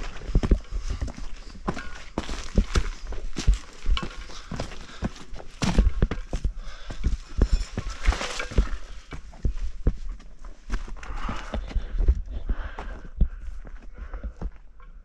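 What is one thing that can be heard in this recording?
Rocks and gravel crunch and scrape as a man moves over the ground.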